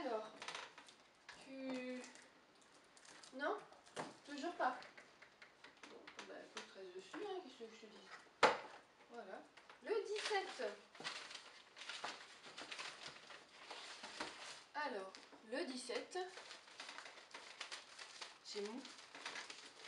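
Cardboard and paper rustle and crinkle as a box is handled.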